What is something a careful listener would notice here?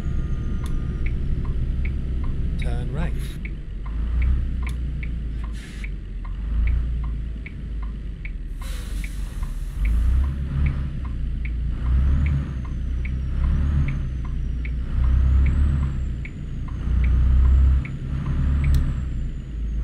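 A turn signal ticks at an even pace.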